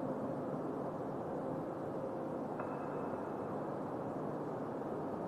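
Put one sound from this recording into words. Electronic dance music plays steadily.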